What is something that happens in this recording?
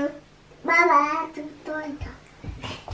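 A young girl speaks in a high voice close by.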